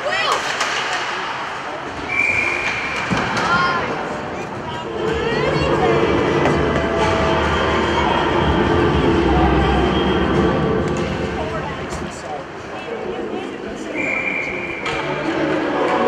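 A crowd of spectators murmurs and chatters throughout.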